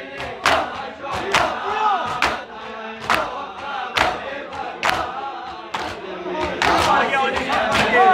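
A crowd of men beat their bare chests in a loud, steady rhythm.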